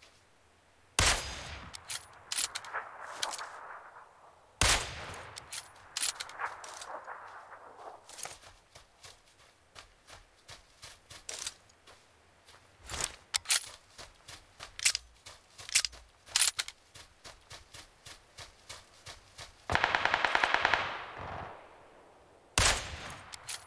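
A rifle fires loud single shots that echo away into the distance.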